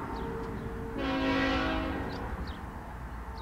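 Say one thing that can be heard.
A train horn blows once in the distance.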